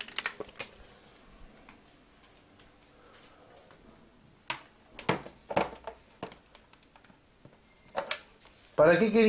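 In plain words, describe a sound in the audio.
A telephone handset knocks and rattles as it is handled close by.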